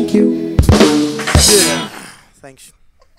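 A keyboard plays a melody.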